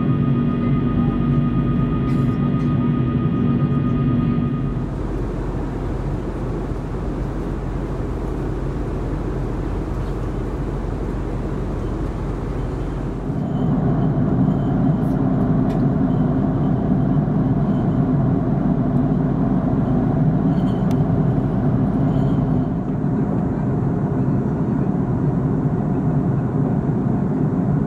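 Jet engines roar steadily, heard from inside an airliner cabin.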